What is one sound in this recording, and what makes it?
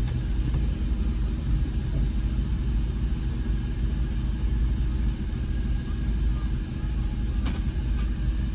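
A car engine idles with a low steady rumble, heard from inside the car.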